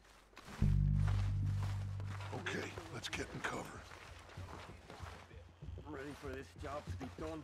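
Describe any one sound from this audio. Footsteps crunch softly through snow.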